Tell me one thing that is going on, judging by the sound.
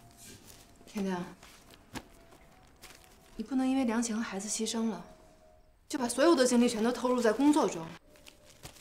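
A young woman speaks tensely, close by.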